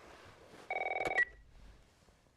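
A phone is picked up with a clatter.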